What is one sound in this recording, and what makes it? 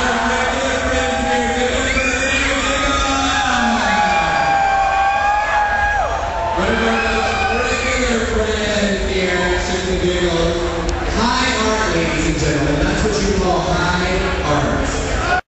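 Loud music with a singing voice plays through loudspeakers.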